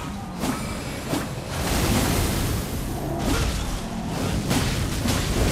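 Metal weapons clang and strike in a fast fight.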